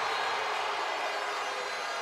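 A young man shouts in celebration.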